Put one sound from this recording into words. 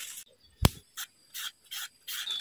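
A knife shreds firm fruit with short crisp scraping strokes.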